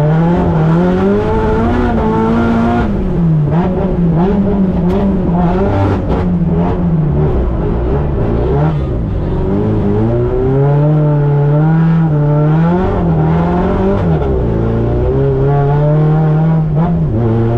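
A sports car engine revs hard and changes pitch as the car drifts, heard from inside the cabin.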